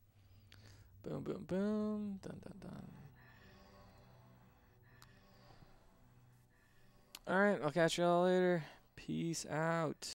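A young man talks with animation into a close microphone, drawing out his words.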